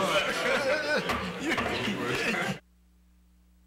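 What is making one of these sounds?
Several men talk and chatter at once in a room.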